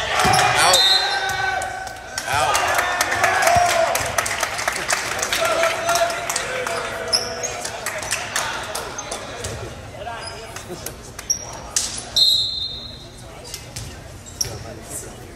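A volleyball is smacked by a player's hands.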